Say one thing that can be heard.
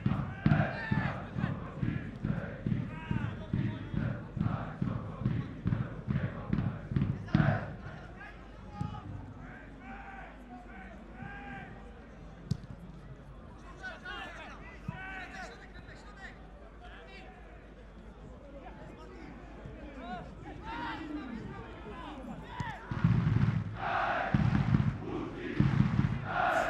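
A large crowd chants rhythmically in a stadium.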